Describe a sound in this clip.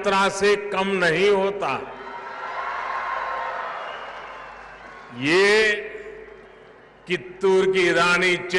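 An elderly man speaks forcefully through a loudspeaker, with long pauses between phrases.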